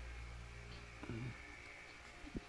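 A newborn baby grunts softly in sleep.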